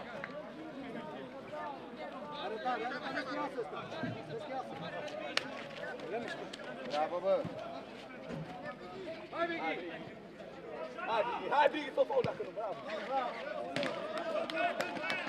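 Men shout to one another on an outdoor pitch.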